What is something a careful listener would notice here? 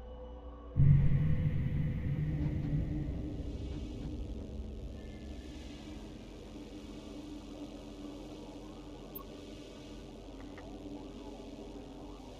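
A deep rumbling boom sounds as a spaceship leaves a dock, then slowly fades to a low hum.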